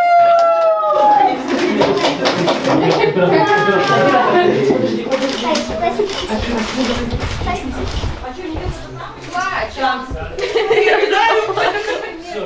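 Several adults talk and exclaim over one another nearby.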